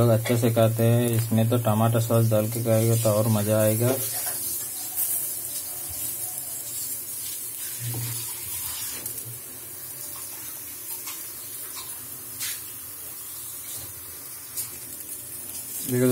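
Patties sizzle on a hot griddle.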